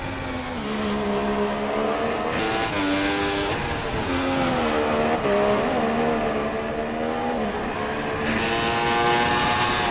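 A racing car engine whines at high revs, its pitch rising and dropping with each gear change.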